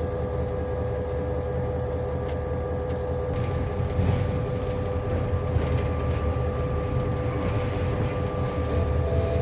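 Train wheels clatter and rumble over the rails.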